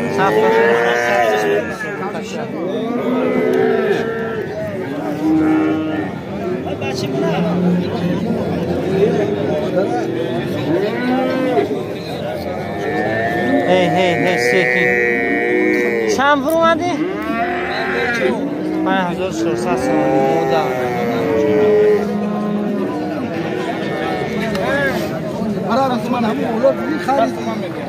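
Men talk loudly over one another in a busy outdoor crowd.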